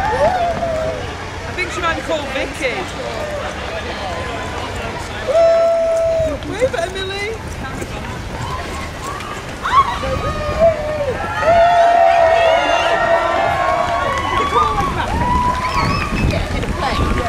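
A crowd cheers and whistles outdoors along a street.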